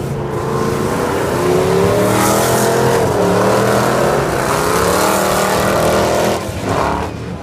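Race car engines roar and rev loudly nearby.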